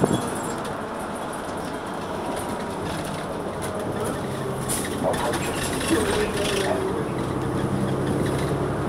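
A bus rattles as it drives along.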